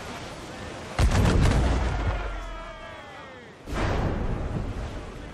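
Cannons fire in loud, booming blasts.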